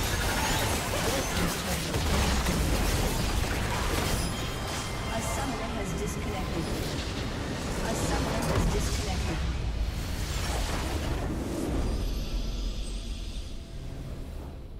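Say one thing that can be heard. Game spell effects crackle and boom in a fierce battle.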